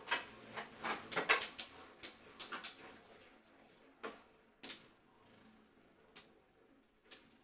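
Spinning tops clash against each other with sharp plastic clacks.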